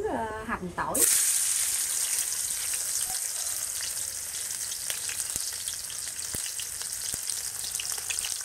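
Oil sizzles and crackles loudly in a frying pan.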